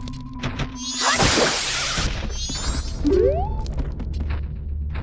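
A sword swings and strikes with sharp metallic slashes.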